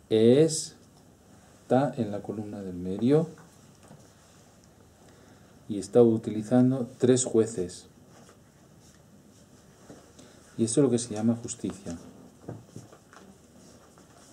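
A middle-aged man speaks calmly and slowly close by, with pauses.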